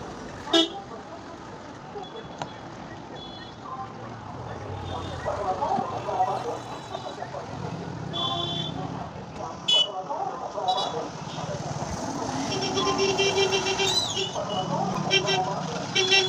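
Vehicle horns honk repeatedly.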